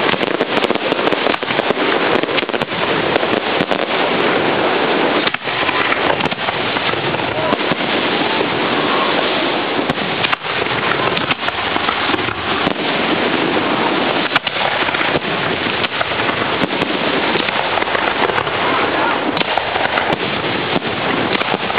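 Fireworks explode in rapid, continuous bangs.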